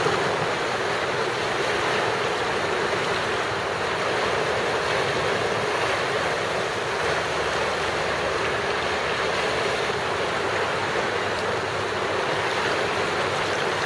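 A fast river rushes and churns steadily close by.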